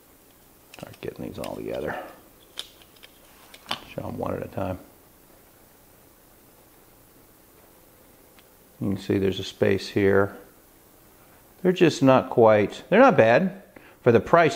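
Small metal folding knives click and clink as hands handle them.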